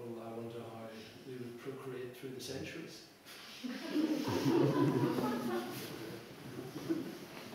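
A man speaks calmly to an audience in an echoing hall.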